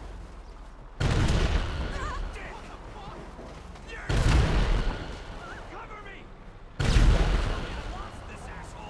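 A tank cannon fires loud booming blasts.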